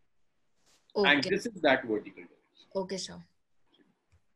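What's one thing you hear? A young man speaks calmly and close through a microphone.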